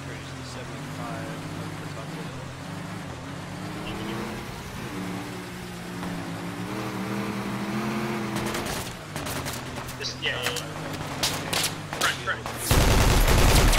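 A vehicle engine rumbles steadily, rising and falling slightly in pitch.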